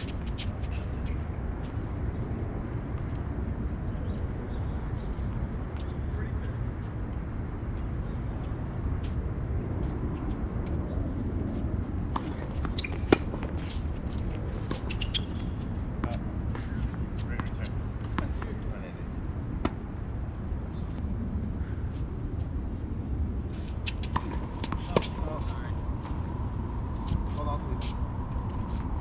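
Rackets hit a tennis ball with sharp pops.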